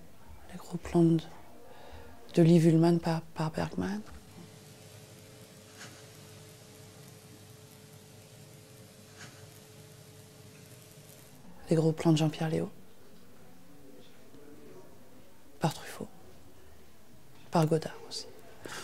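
A middle-aged woman speaks calmly and close to a microphone, in short bursts.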